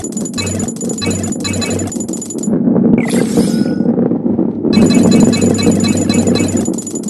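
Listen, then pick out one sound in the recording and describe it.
A ball rolls and rumbles along a wooden track.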